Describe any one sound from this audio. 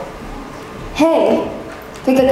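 A young person speaks loudly in a large hall.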